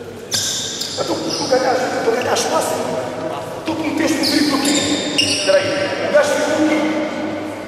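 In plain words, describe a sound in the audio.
A man speaks loudly, giving instructions in a large echoing gym.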